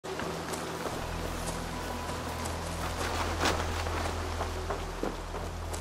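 Footsteps rustle through dry leaves and undergrowth.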